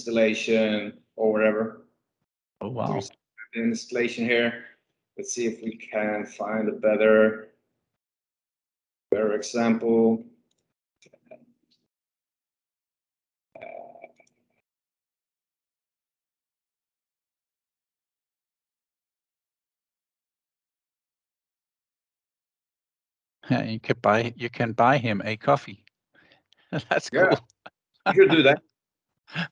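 A young man talks calmly over an online call.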